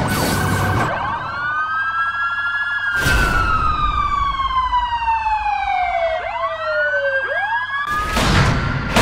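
Police sirens wail, rising and falling.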